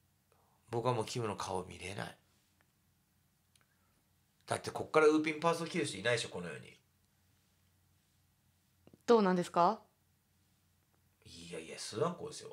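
A man talks with animation into a microphone, in short bursts.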